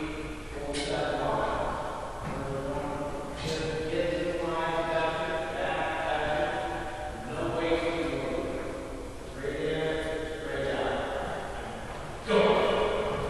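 A man talks calmly in a large echoing room.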